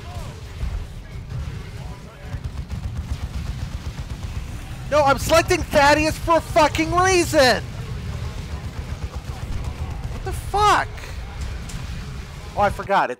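Gunfire and explosions rumble on in a battle.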